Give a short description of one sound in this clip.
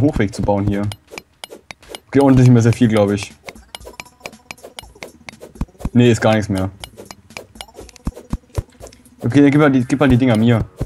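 A pickaxe chips at rock in quick, sharp taps.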